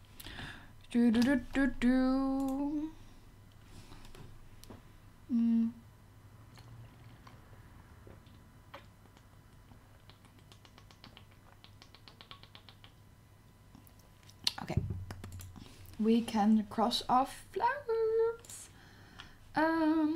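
A young woman talks close to a microphone in short bursts.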